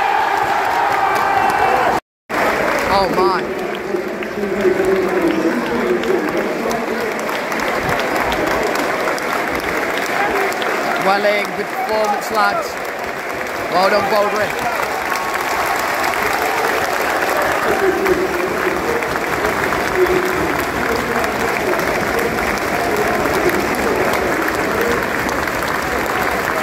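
A large stadium crowd murmurs and chants steadily outdoors.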